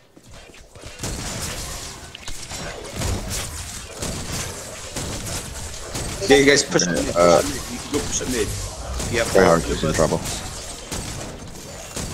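Gunfire and energy blasts crackle in a loud battle.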